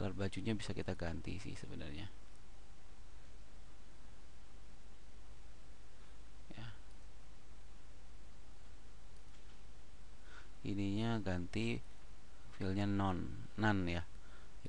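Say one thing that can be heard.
A man speaks calmly and close into a microphone.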